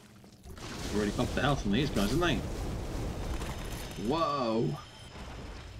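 A large monster lets out deep, wavering groans.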